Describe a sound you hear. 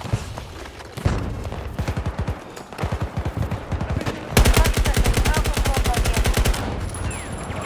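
A rifle fires in rapid, loud bursts close by.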